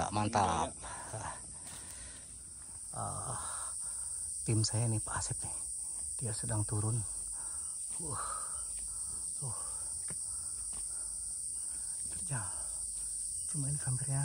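Footsteps crunch on a dirt trail through undergrowth.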